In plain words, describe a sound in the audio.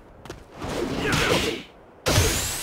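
A burst of fire whooshes and crackles.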